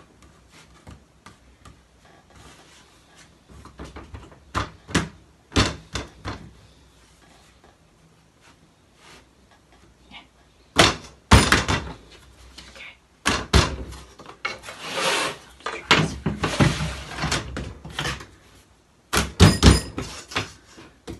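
Paper crinkles and rustles as it is folded and handled.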